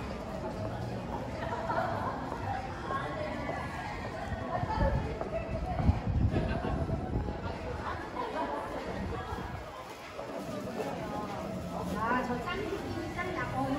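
A crowd of young people chatters nearby outdoors.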